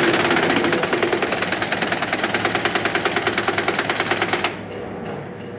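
A pneumatic impact wrench rattles rapidly against a wheel nut.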